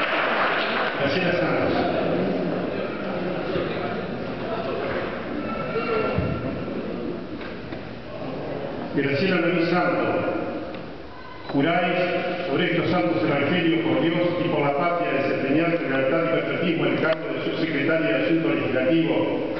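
An elderly man speaks loudly through a microphone, heard over loudspeakers.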